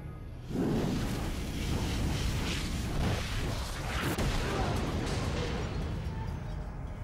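Explosions boom and roar, then fade.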